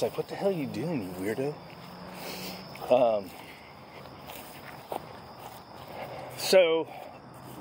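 A dog whines and yelps in high, wavering bursts close by.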